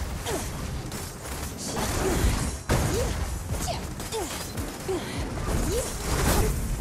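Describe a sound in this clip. Sword slashes whoosh and clash in a fast game fight.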